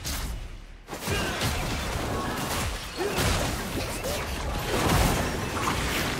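Magic blasts burst and crackle during a fight.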